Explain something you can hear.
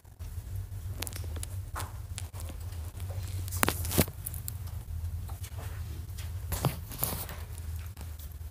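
Fabric rustles and a phone knocks as it is handled close by.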